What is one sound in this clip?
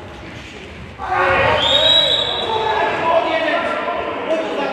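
Men shout loudly across the court.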